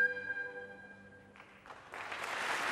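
An orchestra holds a final chord that rings out and fades.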